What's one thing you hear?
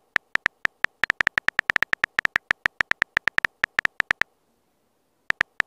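Phone keyboard keys click rapidly as a message is typed.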